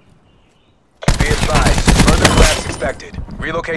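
Rapid gunfire rattles loudly at close range.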